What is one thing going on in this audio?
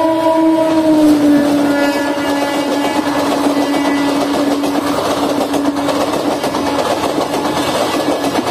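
A passenger train rumbles and clatters past on the rails.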